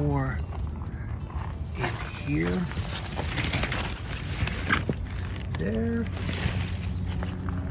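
Grape vine leaves rustle as a hand brushes through them.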